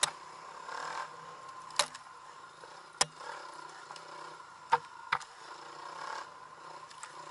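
A dirt bike engine hums steadily at close range.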